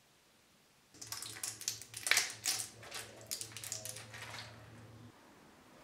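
Pills crackle as they are pushed out of a plastic blister pack.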